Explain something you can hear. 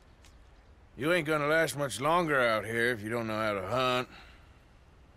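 A man speaks in a low, gruff voice up close.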